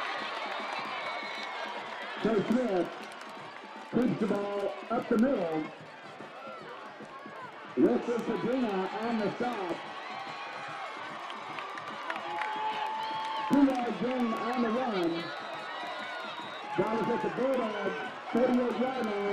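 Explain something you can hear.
A crowd in outdoor stadium stands cheers and chatters.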